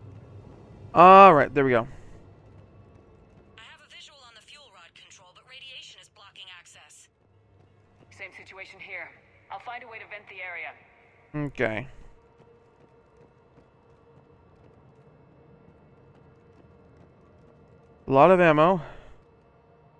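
A young man speaks loudly and briefly into a close microphone.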